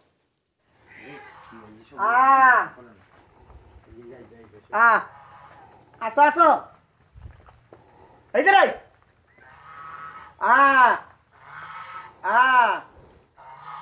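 A woman calls out to animals in a high, sing-song voice nearby.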